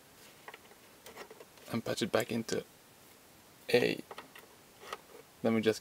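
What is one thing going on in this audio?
Patch cables click as they are plugged in.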